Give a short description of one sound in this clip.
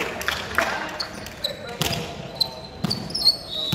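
Sneakers squeak on a wooden floor.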